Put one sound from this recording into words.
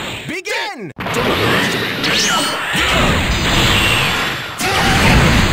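Energy blasts crackle and whoosh in quick bursts.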